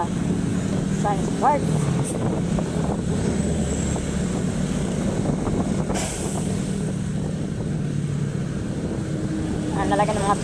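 Motorcycle engines hum steadily close by.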